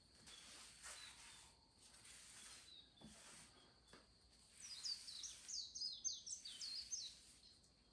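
A cloth rubs and swishes across a wooden surface.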